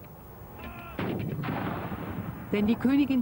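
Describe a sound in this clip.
Field guns fire with a loud boom in the distance.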